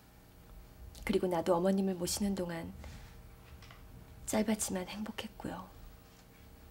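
A young woman speaks calmly and softly close by.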